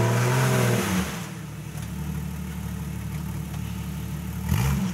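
An off-road vehicle's engine idles with a low rumble.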